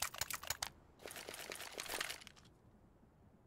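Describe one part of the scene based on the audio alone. Footsteps crunch on snowy cobblestones.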